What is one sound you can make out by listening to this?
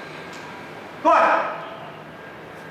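A man calls out briefly.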